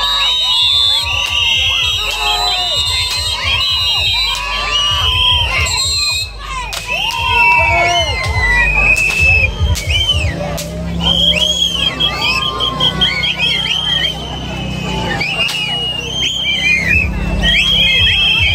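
A crowd of men and women shout and chatter loudly outdoors.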